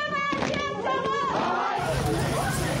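A crowd of young people chants in unison.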